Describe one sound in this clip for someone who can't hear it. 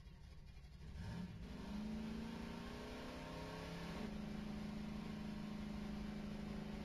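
A quad bike engine revs up and whines as it speeds along.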